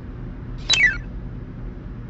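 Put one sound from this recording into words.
A bright chime sound effect plays a quick falling run of notes.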